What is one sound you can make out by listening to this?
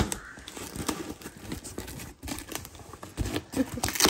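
Cardboard rustles and scrapes.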